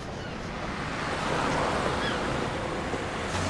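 A van drives past on a street.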